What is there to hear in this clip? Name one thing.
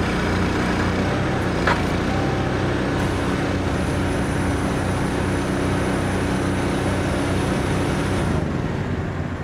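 A large truck engine runs with a steady drone.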